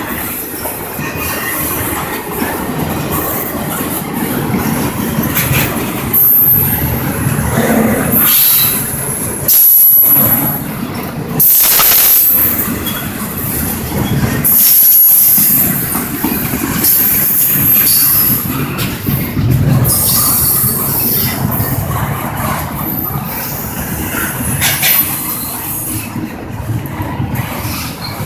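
A long freight train rumbles and clatters steadily past on the tracks.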